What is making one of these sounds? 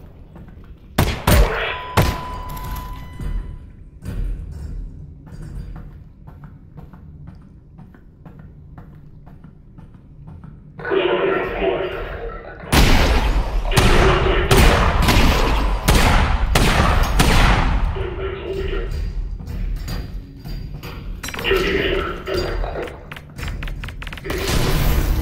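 Gunshots ring out and echo loudly.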